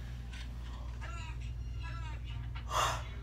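Voices play faintly from a television.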